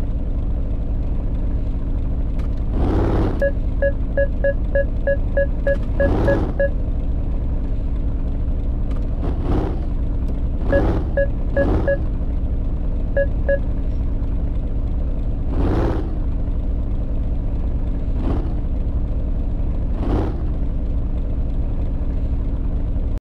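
A car engine rumbles steadily at low idle.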